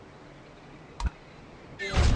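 A button click sounds once.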